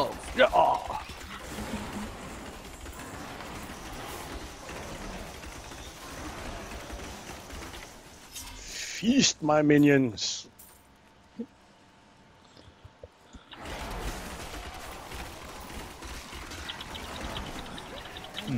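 Magic beams crackle and hiss during a fight.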